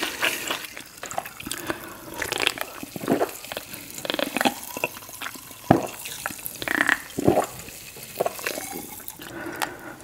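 A woman gulps a drink up close to a microphone.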